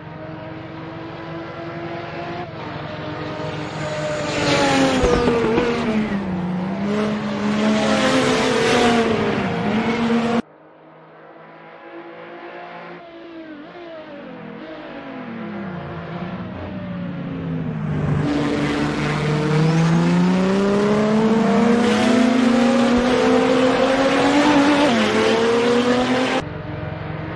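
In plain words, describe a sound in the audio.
A racing car engine roars, rising and falling in pitch as the car speeds up and slows through the bends.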